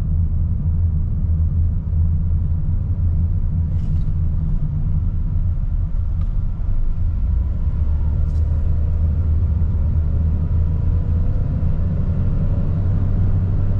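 A small car's engine hums low and steady from inside the cabin as it drives.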